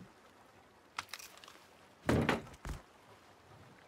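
Footsteps clank on a metal ladder.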